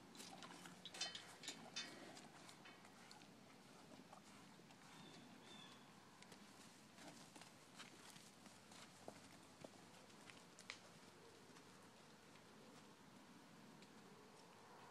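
Hooves squelch and thud on soft muddy ground.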